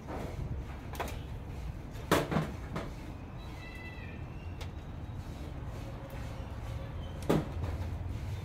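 Metal parts clank and knock as a small machine is handled.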